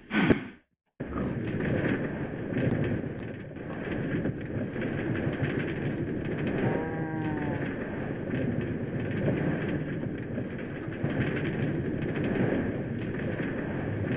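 A minecart rumbles steadily along rails.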